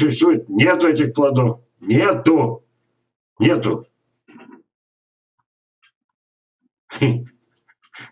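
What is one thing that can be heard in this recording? An elderly man speaks calmly in short phrases through an online call microphone.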